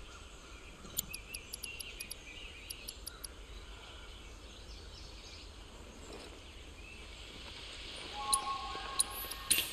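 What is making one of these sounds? Soft electronic menu beeps tick as selections change.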